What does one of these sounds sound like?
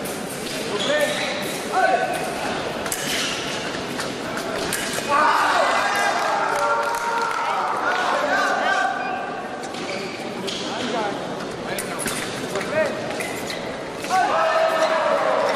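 Fencing blades clash and scrape together.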